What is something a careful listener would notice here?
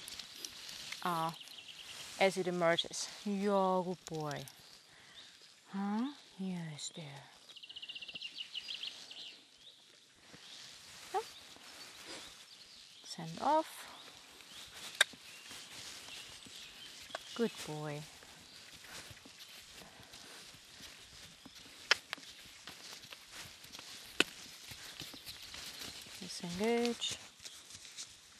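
A young woman talks calmly to a horse, close by outdoors.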